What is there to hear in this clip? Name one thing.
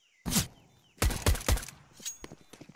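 Pistol shots crack in quick succession.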